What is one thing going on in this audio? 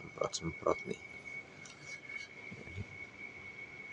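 A metal tool clicks and scrapes against a bicycle wheel rim.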